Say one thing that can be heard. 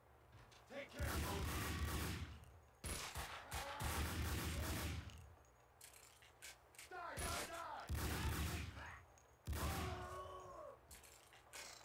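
Gunshots bang loudly and echo.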